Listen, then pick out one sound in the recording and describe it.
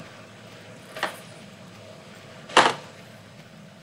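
A gun fires loudly a couple of times.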